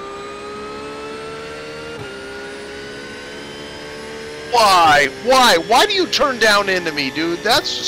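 A race car engine drones steadily, dropping briefly at a gear change.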